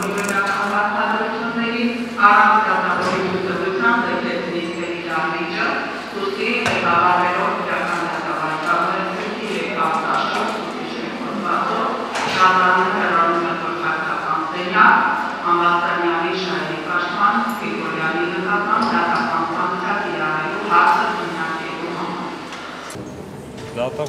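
A middle-aged woman speaks steadily and firmly into a microphone in an echoing room.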